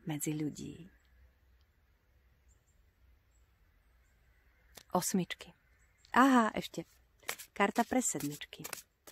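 A woman speaks close by with animation, in short bursts with pauses.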